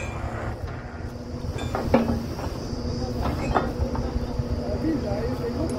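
A drilling rig's engine rumbles steadily close by.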